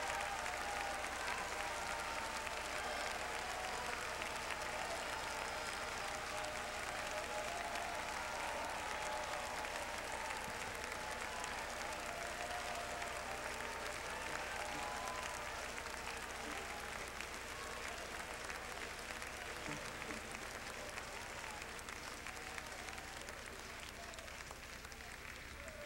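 A large crowd sings together in a big echoing hall.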